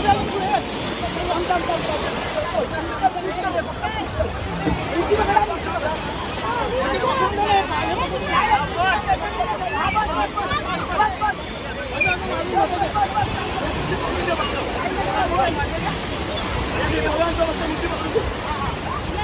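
A group of men shout and talk loudly together outdoors.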